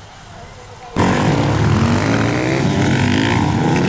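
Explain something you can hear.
A dirt bike engine roars and revs nearby.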